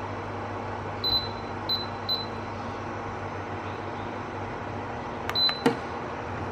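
A control panel beeps sharply as its buttons are pressed.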